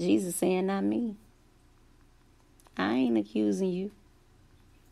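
A woman sings in short, drawn-out phrases close to a microphone.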